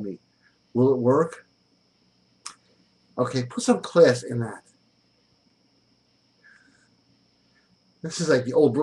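A middle-aged man speaks close to a microphone in short, animated bursts with pauses.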